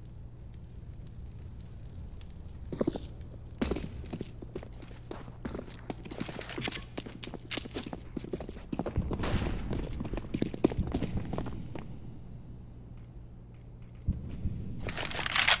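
Quick footsteps run on hard ground.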